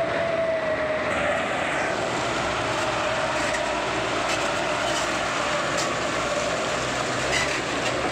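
Heavy tyres roll slowly over soft mud.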